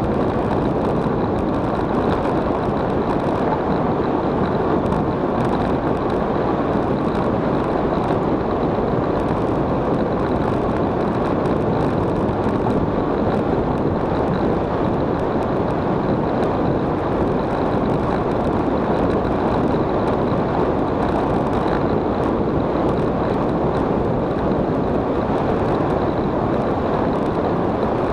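Wind rumbles and buffets against a microphone during a fast downhill ride.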